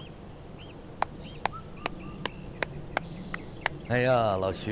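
A man claps his hands several times.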